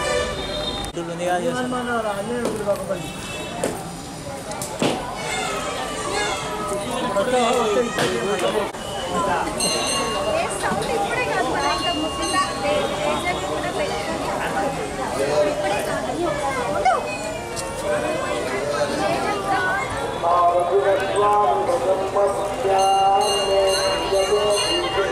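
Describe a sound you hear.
A crowd of women and men chatter nearby outdoors.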